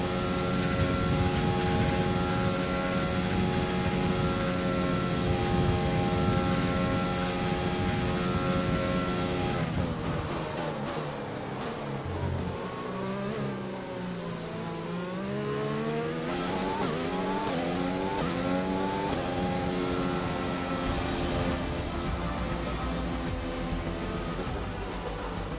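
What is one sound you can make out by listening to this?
A racing car engine screams at high revs, dropping in pitch as it brakes and rising again as it speeds up.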